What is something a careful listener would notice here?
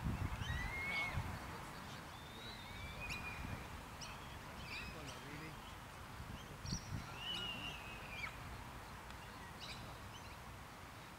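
Wind rumbles outdoors in the open.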